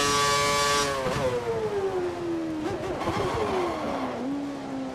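A racing car engine drops in pitch as the car slows for a corner.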